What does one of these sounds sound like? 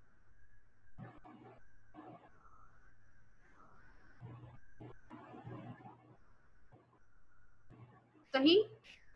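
A child speaks quietly over an online call.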